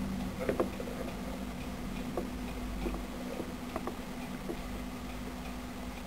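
Newborn mice stir faintly in dry wood shavings.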